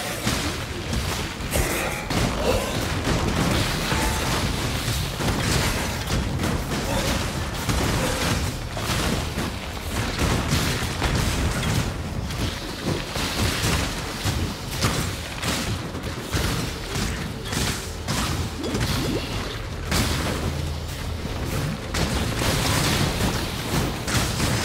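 Spells crackle and explode in rapid bursts during a fight.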